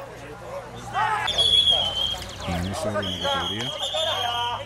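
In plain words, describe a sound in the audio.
A woman calls out to a dog with animation.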